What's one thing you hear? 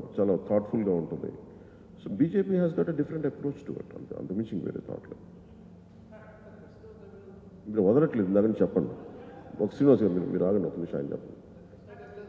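A man speaks with animation into a microphone, close by.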